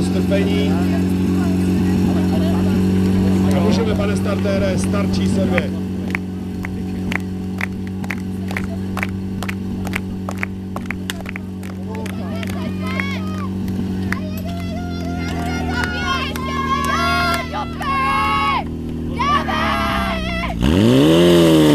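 A fire pump engine runs with a steady loud hum.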